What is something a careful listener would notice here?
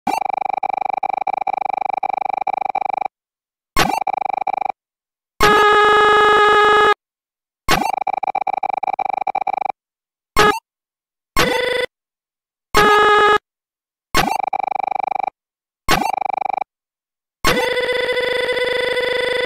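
Rapid, pitched electronic beeps chatter in short bursts, like game dialogue blips.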